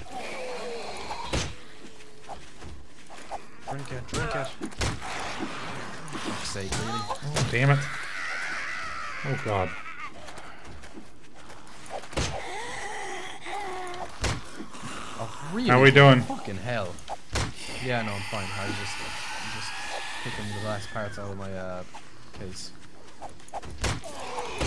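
Zombies growl and moan close by.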